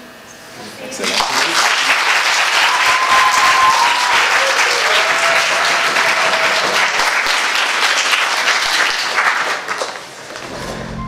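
An audience applauds loudly.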